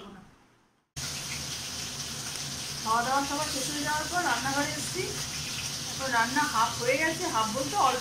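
A middle-aged woman talks close to the microphone.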